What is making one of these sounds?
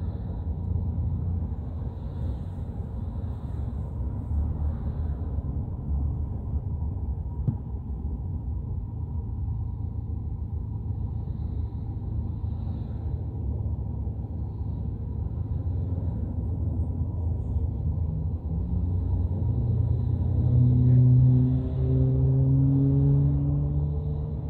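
A vehicle rumbles steadily along the road, heard from inside.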